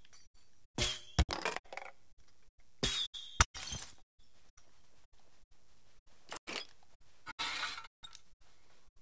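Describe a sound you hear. Short game sound effects chime and whoosh in bursts.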